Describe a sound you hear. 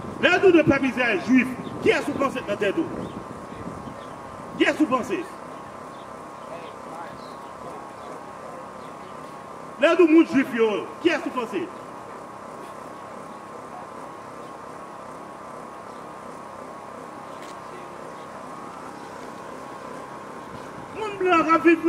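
A man preaches loudly through a handheld microphone and loudspeaker, outdoors.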